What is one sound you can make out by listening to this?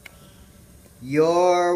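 A cartoon character screams loudly.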